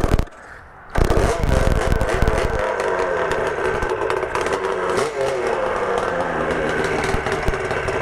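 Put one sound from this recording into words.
A motorcycle engine revs up and roars as the bike rides off.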